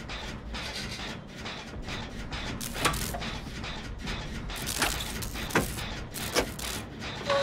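Metal parts clank and rattle as a machine is worked on.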